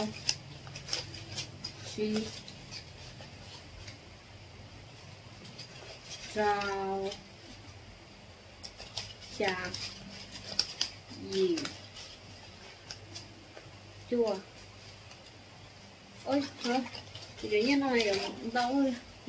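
Paper banknotes rustle and flick as they are counted.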